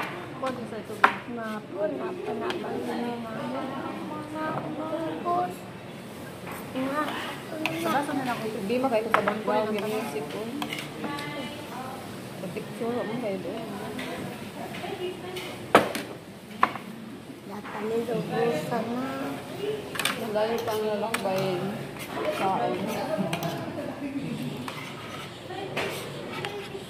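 A young woman talks calmly up close.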